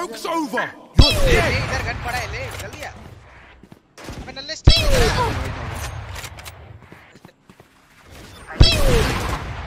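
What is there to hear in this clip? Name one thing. A sniper rifle fires with loud, sharp cracks.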